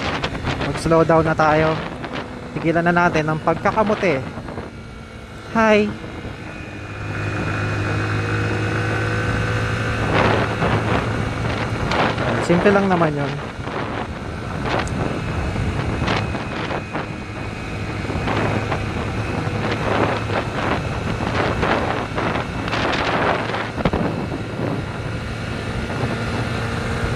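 A motorcycle engine hums steadily and revs as it rides along.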